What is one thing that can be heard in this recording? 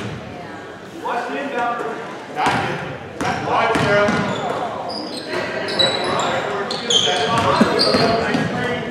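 A crowd of spectators cheers and calls out.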